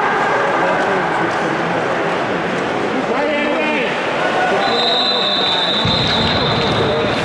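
Bandy players' skates scrape across ice in a large echoing arena.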